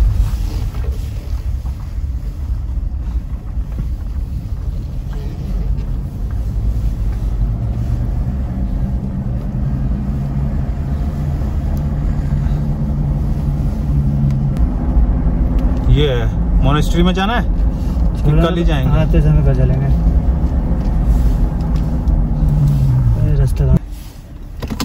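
A vehicle engine hums steadily while driving on a road.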